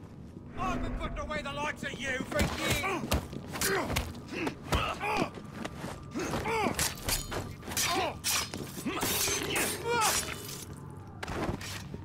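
Punches and blows thud in a quick scuffle.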